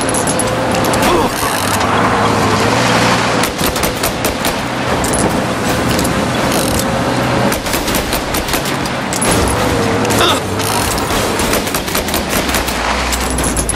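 Metal bangs as two cars collide.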